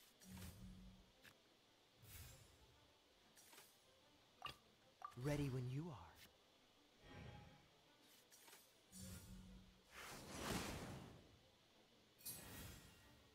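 Game sound effects chime and whoosh as cards are played.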